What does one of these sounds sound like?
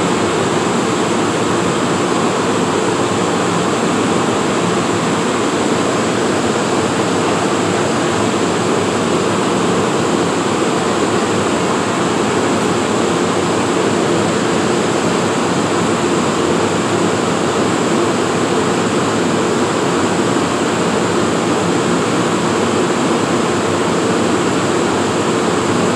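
A train engine idles with a steady loud hum, echoing in an underground hall.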